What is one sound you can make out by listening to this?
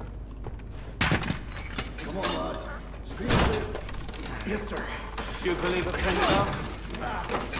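A heavy metal bar scrapes and clanks as hands lift it.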